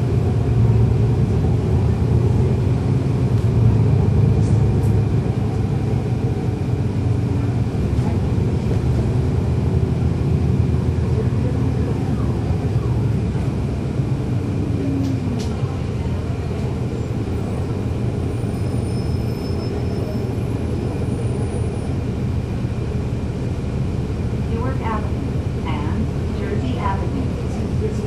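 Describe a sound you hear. A diesel city bus engine drones, heard from on board.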